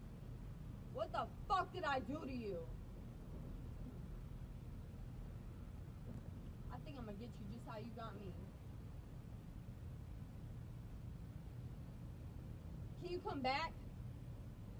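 A young woman speaks curtly in short bursts, close by.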